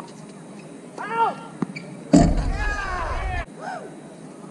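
A man shouts briefly from the court.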